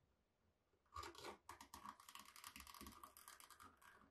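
A blade scratches in short, rapid strokes.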